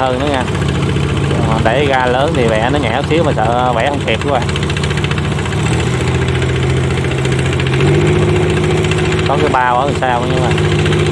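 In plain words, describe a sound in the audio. A small engine chugs steadily close by.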